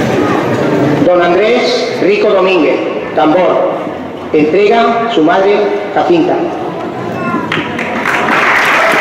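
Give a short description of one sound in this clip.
A brass and drum band plays loudly in a large echoing hall.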